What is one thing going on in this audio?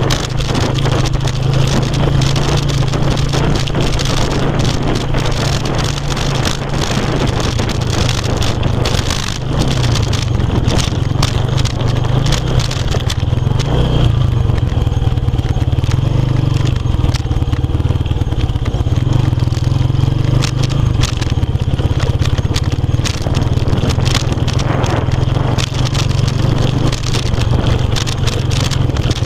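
A motorcycle engine chugs steadily up close.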